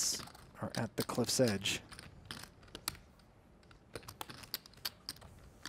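Poker chips clack together softly in a hand.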